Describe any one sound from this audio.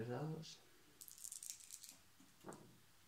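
Dice rattle in a hand and clatter onto a table.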